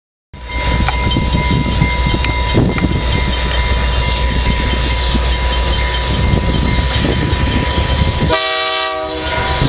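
A diesel train rumbles and clatters close by on the tracks.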